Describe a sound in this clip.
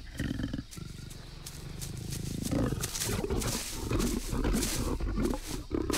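A large cat growls.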